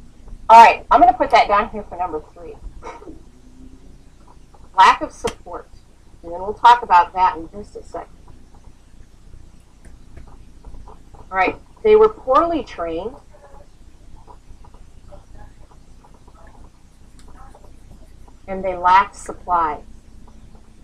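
A young woman speaks quietly and calmly close by, in short bursts with pauses.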